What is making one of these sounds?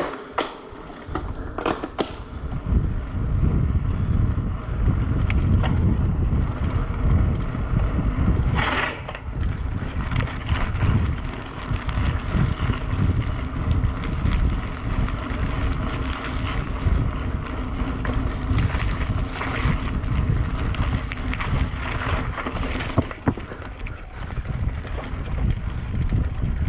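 Wind rushes and buffets the microphone as a bicycle rides outdoors.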